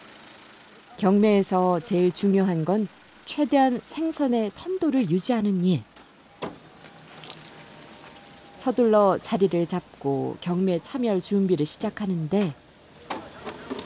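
An elderly woman talks loudly and with animation close by.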